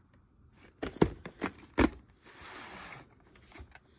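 A plastic videotape case snaps open.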